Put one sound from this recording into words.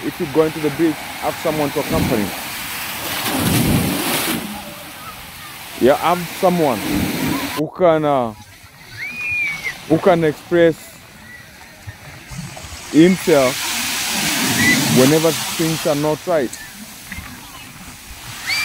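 Waves crash and wash onto a shore.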